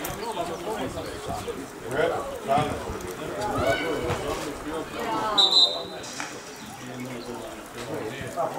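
Young players shout to each other outdoors across an open field.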